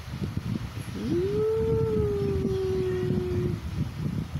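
A small puppy lets out a drawn-out whine.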